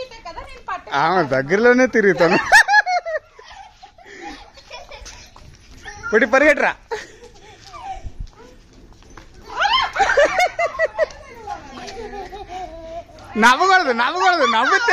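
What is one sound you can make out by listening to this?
Young children shout and squeal excitedly close by.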